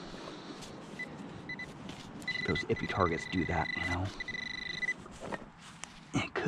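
A hand tool scrapes and pushes into loose soil.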